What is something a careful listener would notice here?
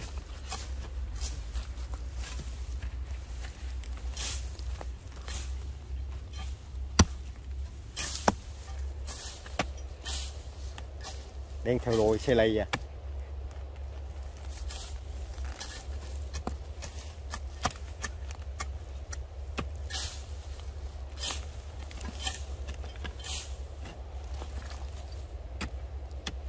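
A metal shovel scrapes and chops into dry soil.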